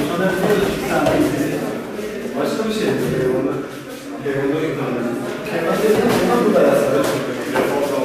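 Gloved punches and kicks thud against padding.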